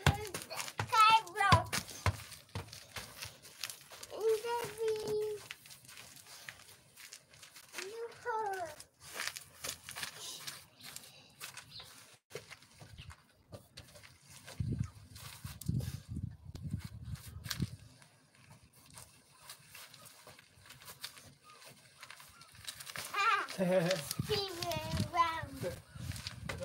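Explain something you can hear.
A ball thumps softly as it is kicked and bounced.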